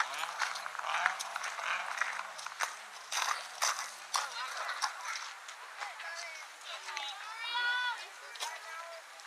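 Young girls shout and cheer outdoors across an open field.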